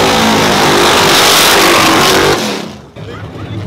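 A car engine roars loudly close by.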